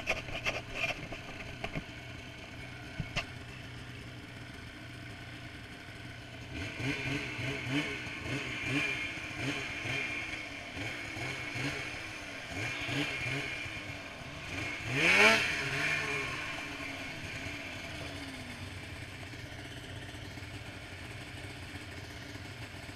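A snowmobile engine drones steadily nearby.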